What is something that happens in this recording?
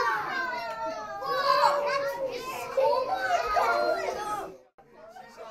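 Young children shout and laugh excitedly close by.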